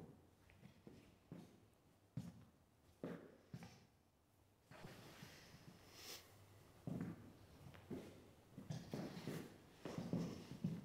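Shoes step and scuff on a hard floor.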